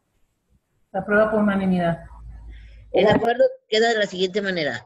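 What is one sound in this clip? A woman speaks clearly through an online call.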